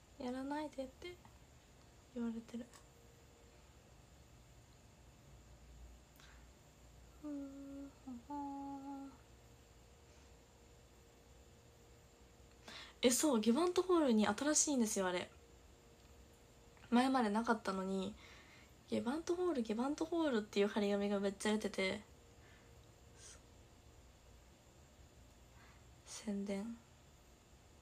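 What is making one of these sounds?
A young woman speaks softly and cheerfully, close to a microphone, with pauses.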